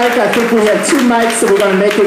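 People in an audience clap.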